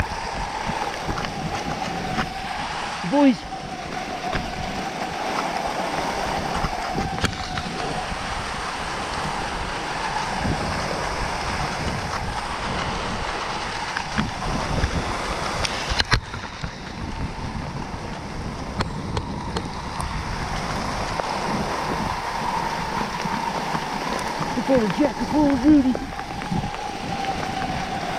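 Wind rushes past a microphone.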